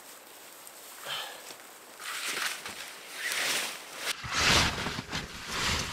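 Leafy branches rustle and scrape as a man drags them across the ground.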